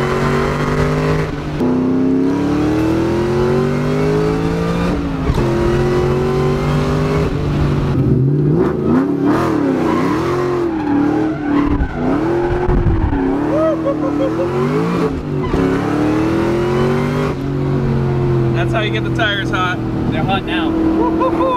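A car engine hums and rises in pitch as it accelerates through the gears.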